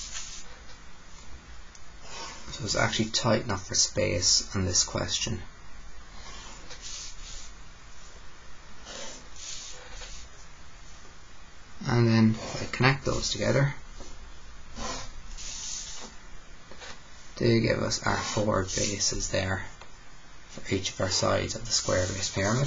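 A plastic set square slides and taps on paper.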